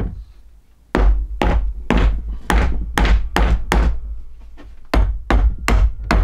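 A mallet knocks sharply on wood several times.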